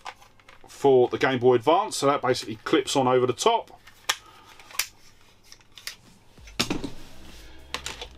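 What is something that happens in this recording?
Plastic packaging crinkles and clicks in a man's hands.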